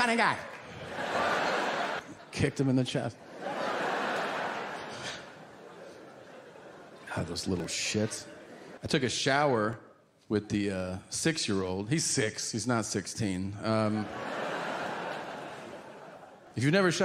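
An audience laughs.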